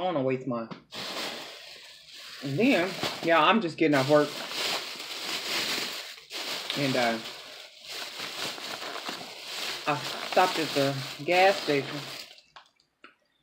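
A plastic bag rustles and crinkles loudly.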